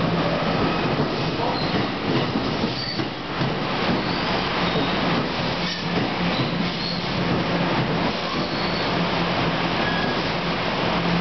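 A train rumbles and clatters past, echoing under a station roof.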